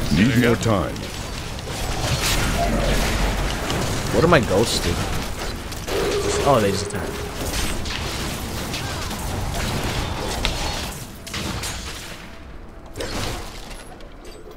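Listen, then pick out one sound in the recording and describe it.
Weapons strike monsters in quick, repeated hits.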